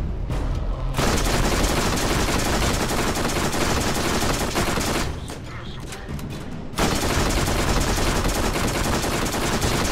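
A heavy gun fires in rapid bursts.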